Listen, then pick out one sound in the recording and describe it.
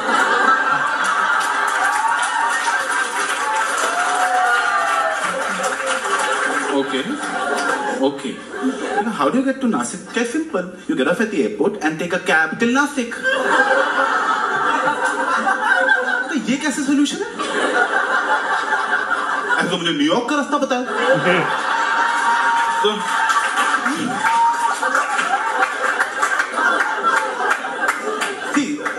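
An audience laughs and cheers through a loudspeaker.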